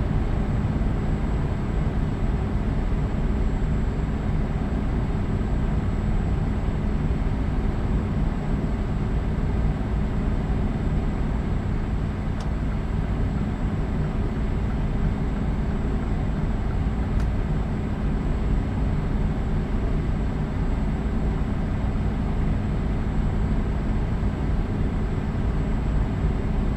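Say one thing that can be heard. Tyres roll on asphalt with a steady road noise.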